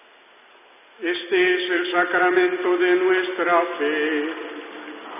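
A man chants a sung prayer in a large echoing hall.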